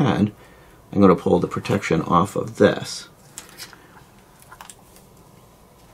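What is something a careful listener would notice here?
Backing paper crinkles and peels away from a sticky sheet.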